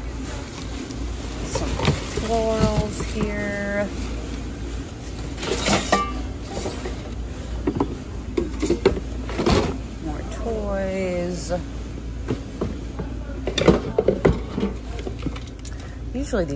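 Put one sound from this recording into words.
Hands rummage through items in a plastic bin, making them rustle and knock.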